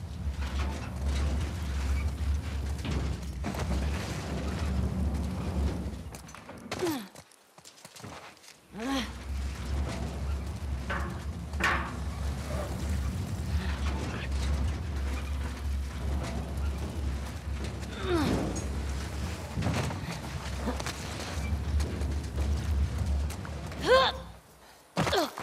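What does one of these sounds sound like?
A heavy metal bin scrapes and rumbles as it is pushed along the ground.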